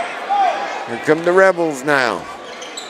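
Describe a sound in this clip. A spectator shouts loudly nearby.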